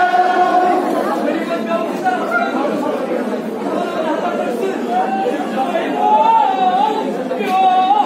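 A crowd of men talks and murmurs all around.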